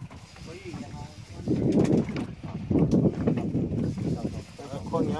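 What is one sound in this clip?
Water laps against the side of a boat.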